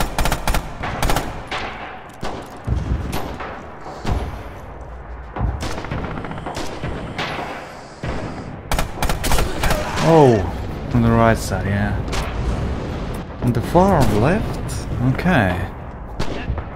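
Rifle shots crack sharply, one after another.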